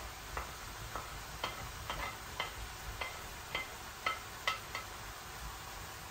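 A wooden spoon scrapes and taps against a frying pan.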